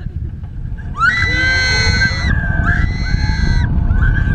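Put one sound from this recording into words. A young woman screams loudly close by.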